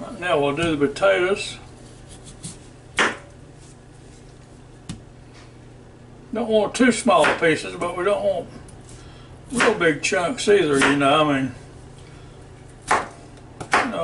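A knife chops through a potato and taps on a cutting board.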